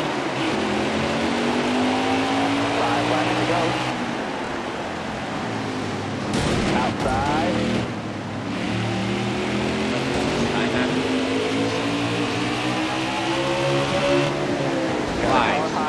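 Race car engines roar and whine steadily, rising and falling in pitch as they shift.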